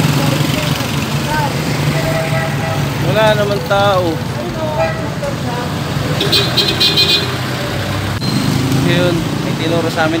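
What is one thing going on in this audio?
Traffic hums along a nearby street.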